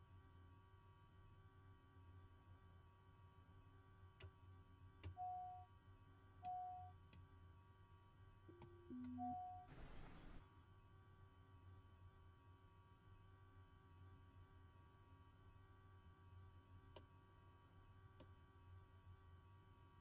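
An aircraft engine hums low and steady.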